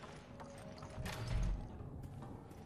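A door swings open with a thump.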